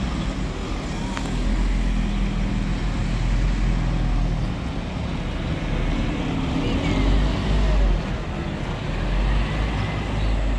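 A bus engine rumbles and whines close by as a bus pulls past.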